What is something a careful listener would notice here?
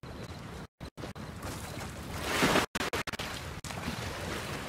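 Water splashes loudly as someone plunges in and swims.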